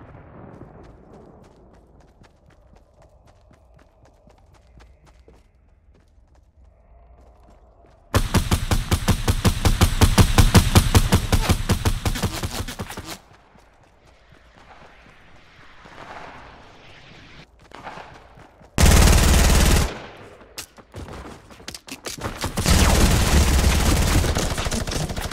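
Footsteps patter quickly across grass and wooden floors.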